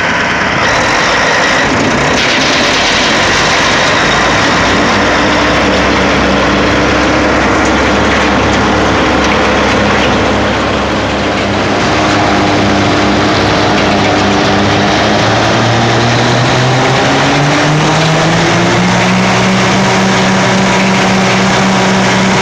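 A heavy grinding machine rumbles and clatters.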